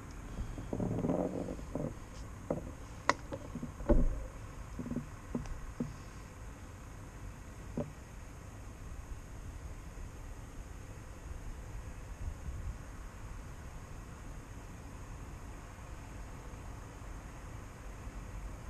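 Traffic hums faintly in the distance.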